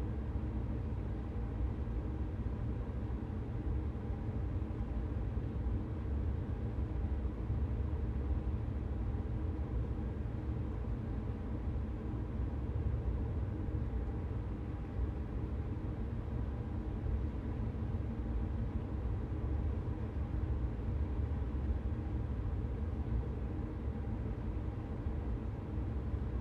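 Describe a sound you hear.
Train wheels rumble along the track.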